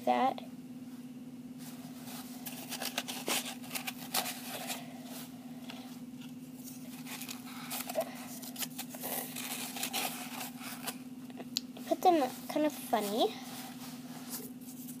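Tissue paper rustles and crinkles close by.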